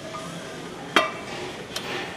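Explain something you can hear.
A metal weight plate clanks against a barbell.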